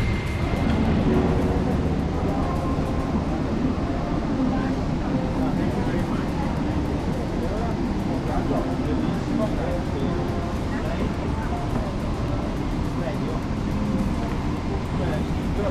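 Many passengers murmur and chatter nearby.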